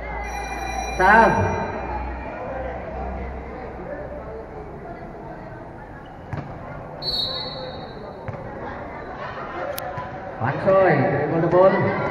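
Young voices shout and cheer loudly.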